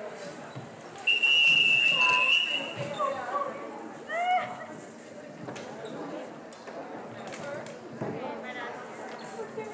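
Young women chatter and shout in a large echoing gym.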